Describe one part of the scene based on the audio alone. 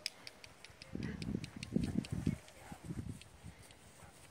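Dogs scuffle and romp through grass close by.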